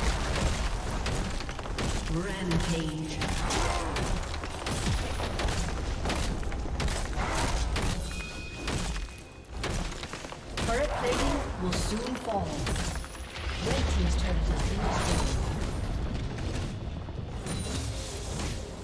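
Spell effects and weapon hits clash and burst in a fast-paced battle.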